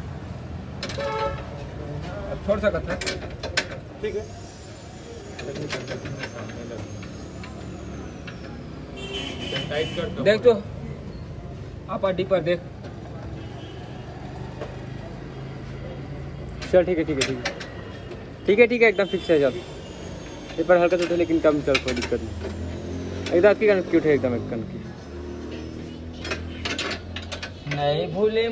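Metal clanks against a metal frame.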